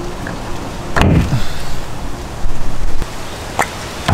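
A suction cup pops off a car door with a sharp snap.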